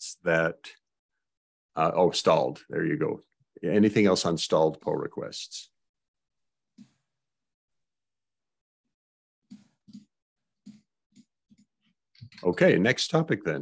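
An elderly man speaks calmly and close to a microphone, with pauses.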